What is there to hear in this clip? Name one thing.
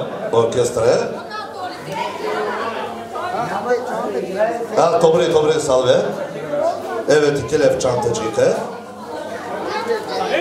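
A middle-aged man sings loudly into a microphone through loudspeakers.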